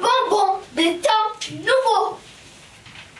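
A woman speaks in a high, exaggerated character voice close by.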